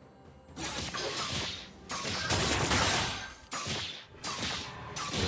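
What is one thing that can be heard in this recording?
Magic spells whoosh and crackle in a clashing fight.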